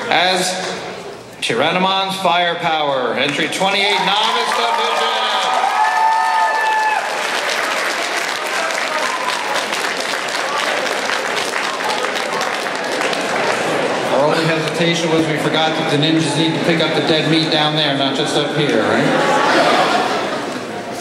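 A large audience chatters and cheers in an echoing hall.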